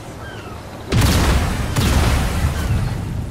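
Flames roar.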